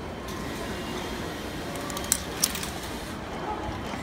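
A ticket gate whirs and clicks as a ticket goes through.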